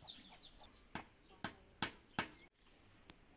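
A hoe thuds into soil.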